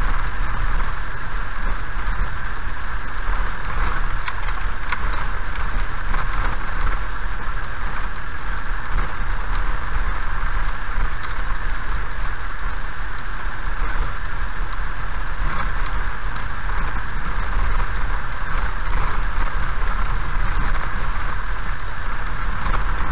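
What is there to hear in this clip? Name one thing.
Tyres roll over a wet road.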